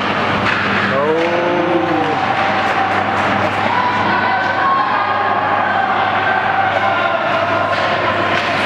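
Spectators shout and cheer in an echoing indoor rink.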